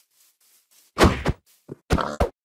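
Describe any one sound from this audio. A pig squeals.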